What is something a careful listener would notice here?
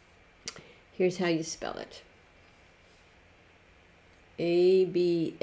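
An older woman speaks clearly and slowly, close by.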